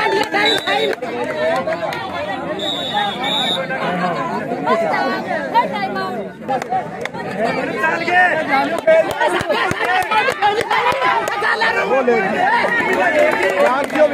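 A large crowd of spectators shouts and cheers outdoors.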